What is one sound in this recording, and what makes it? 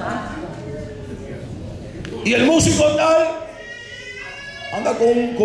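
A man preaches with passion through a microphone, his voice ringing in a large echoing hall.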